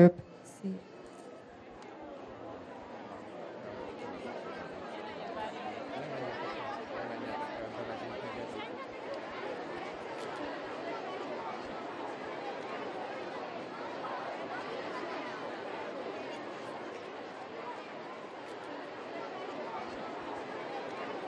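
A large crowd of children and adults chatters outdoors.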